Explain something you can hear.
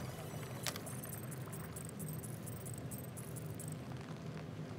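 Short electronic menu ticks sound in quick succession.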